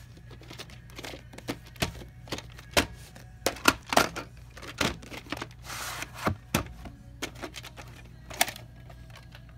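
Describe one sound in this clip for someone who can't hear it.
A plastic case rattles and clicks as hands turn it over.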